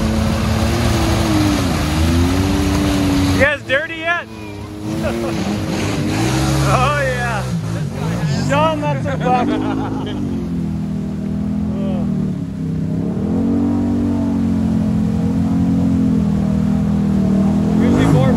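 Mud splashes and sprays under churning tyres.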